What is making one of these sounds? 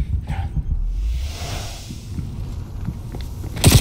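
Glass shatters loudly.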